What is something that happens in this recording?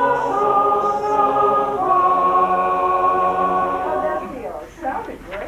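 A choir of men and women sings together in a room.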